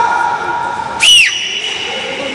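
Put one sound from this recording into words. A referee blows a sharp whistle blast.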